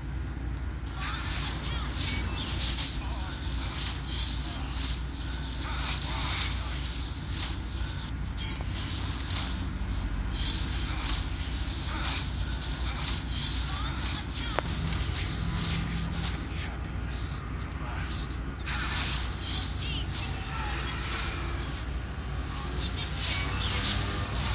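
Fantasy battle effects whoosh, zap and clash in quick bursts.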